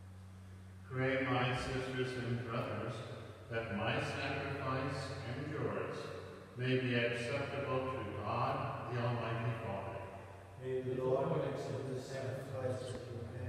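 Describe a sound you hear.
A man speaks calmly and steadily in a large, echoing hall.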